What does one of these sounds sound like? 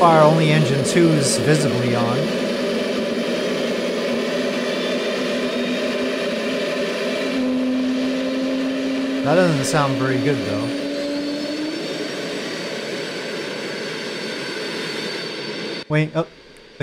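A jet engine whines and hums steadily at idle.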